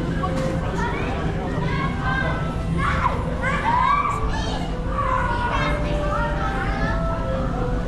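A crowd of adults chatters in a large echoing hall.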